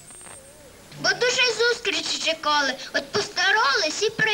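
Young children sing loudly together close by.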